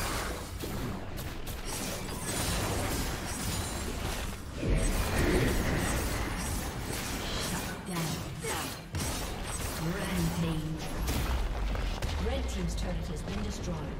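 Game spell effects and weapon hits clash and burst in quick succession.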